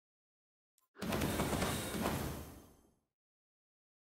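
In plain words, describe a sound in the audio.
A game's reward sound effect swells with a rumbling whoosh and fades.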